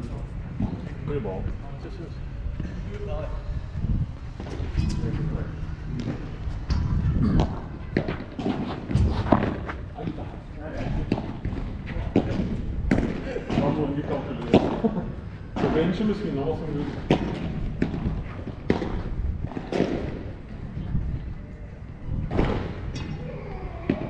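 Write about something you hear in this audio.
Men talk and call out during play, outdoors.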